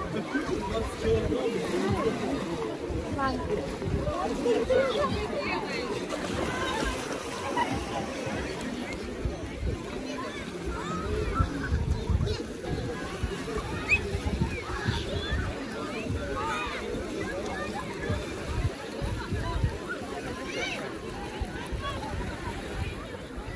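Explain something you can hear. Children shout and squeal while playing in water.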